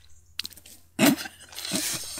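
A woman laughs briefly.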